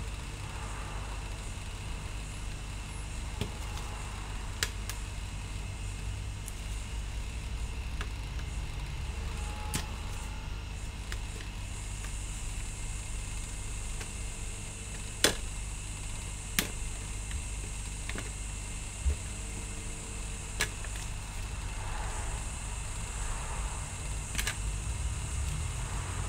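A hot air gun blows with a steady rushing hiss.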